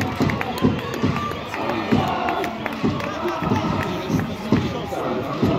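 A large crowd of fans chants and sings loudly in an open stadium.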